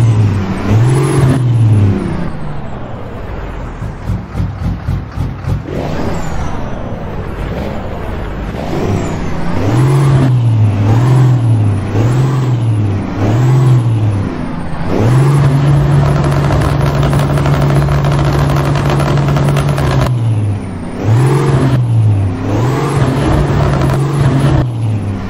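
A diesel semi-truck with open exhaust pipes revs in bursts while standing.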